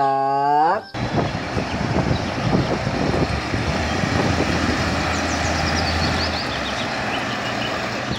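A heavy dump truck engine rumbles and strains.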